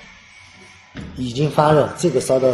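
A middle-aged man speaks into a microphone in an echoing room.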